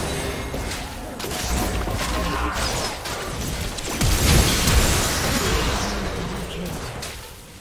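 Game spell effects and attacks crackle and burst in a busy fight.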